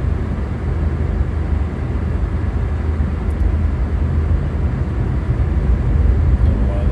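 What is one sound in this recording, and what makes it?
Tyres hiss and rumble on a snowy road.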